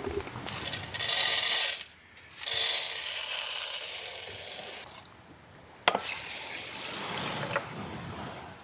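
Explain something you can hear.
Dry rice pours and patters into a metal tin.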